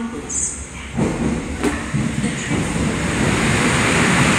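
A train rolls into the station with a rising rumble.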